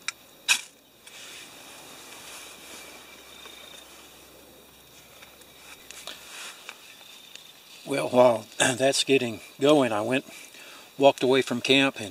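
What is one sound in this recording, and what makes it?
A small wood fire crackles and hisses softly.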